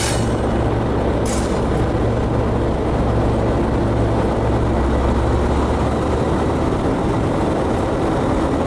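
A locomotive's engine rumbles, heard from inside the cab.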